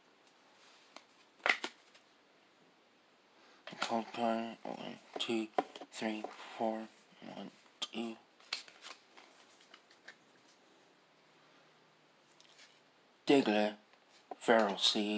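Trading cards rustle and flick as a hand flips through them.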